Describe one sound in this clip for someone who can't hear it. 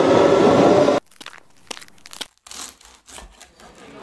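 A knife cuts into a soft burger.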